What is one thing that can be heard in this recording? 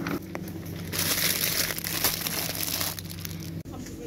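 A plastic wrapper crinkles in a hand.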